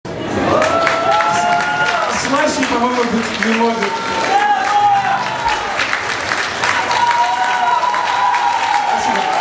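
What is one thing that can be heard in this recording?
A young man sings into a microphone.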